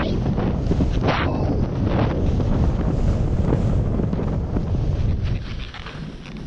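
Wind rushes loudly past while skiing fast.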